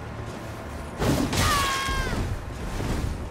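Swords clash with a ringing metallic clang.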